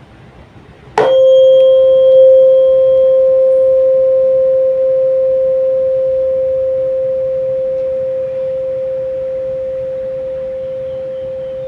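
A tuning fork rings with a clear, steady tone that slowly fades.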